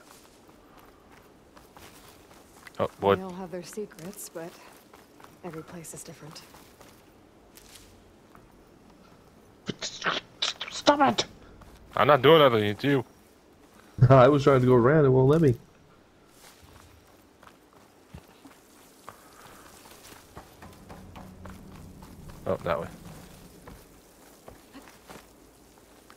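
Footsteps rustle softly through leafy undergrowth.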